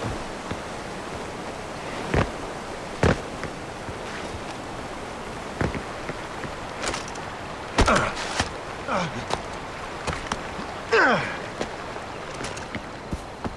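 Footsteps crunch on rocky ground.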